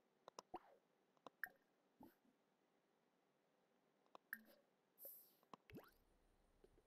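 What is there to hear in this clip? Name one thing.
Short game interface clicks and chimes sound several times.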